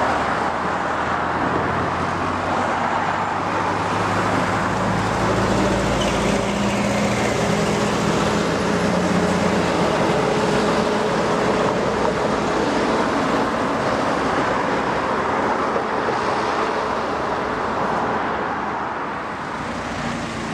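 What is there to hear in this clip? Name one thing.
Cars drive by with tyres hissing on the road.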